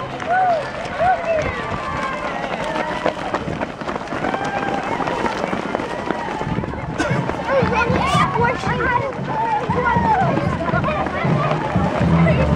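A crowd of people cheers and shouts outdoors.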